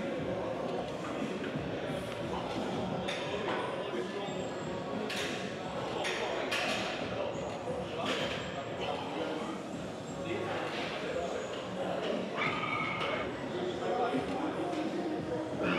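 A weight machine clanks as its plates lift and drop.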